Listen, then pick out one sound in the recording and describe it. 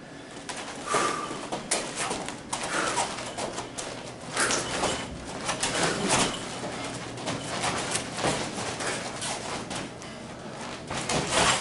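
Hands slap and strike against arms.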